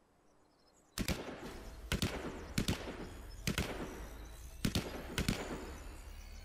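Sharp rifle shots crack in quick succession with a ringing echo.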